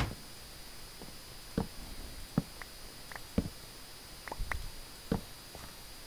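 Footsteps tap on blocks in short, quick clicks.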